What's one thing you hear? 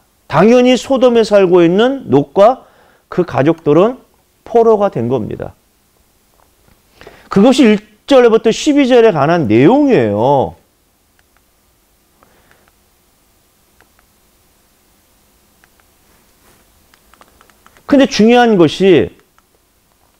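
A man lectures with animation through a microphone, with pauses.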